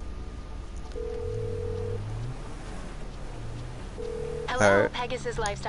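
A phone ringing tone beeps twice.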